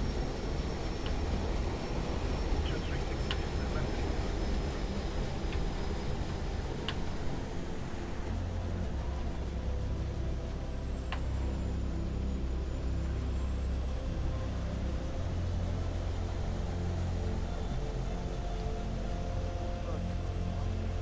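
A low engine hum drones steadily from an aircraft.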